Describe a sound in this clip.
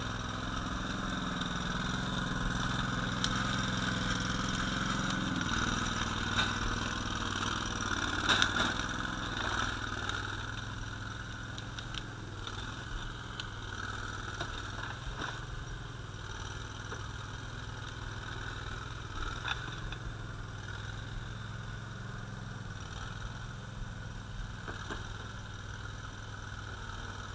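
A small tracked machine's engine runs steadily close by.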